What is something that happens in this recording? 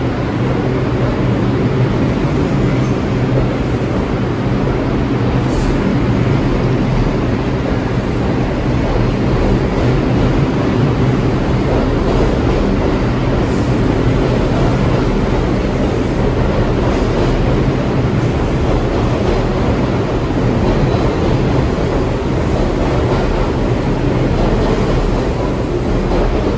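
A subway train rushes past close by with a loud, steady rumble and rattle.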